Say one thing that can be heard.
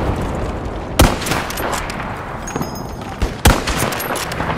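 A rifle fires a sharp, loud shot.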